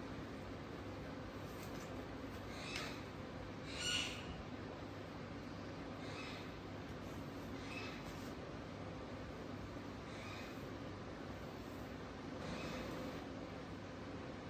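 A comb swishes softly through long hair, stroke after stroke.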